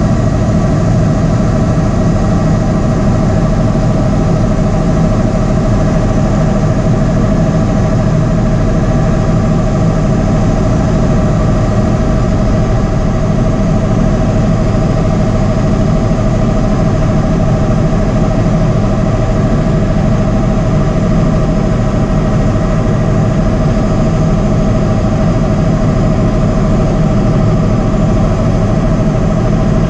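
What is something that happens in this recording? A helicopter's engine and rotor drone loudly and steadily inside the cabin.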